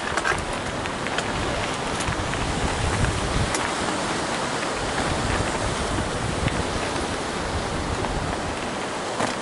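Waves wash against rocks nearby.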